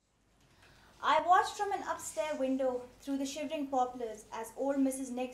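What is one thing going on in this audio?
A woman reads aloud clearly.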